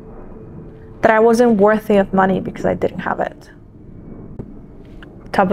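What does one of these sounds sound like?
A young woman speaks calmly and thoughtfully, close to a microphone.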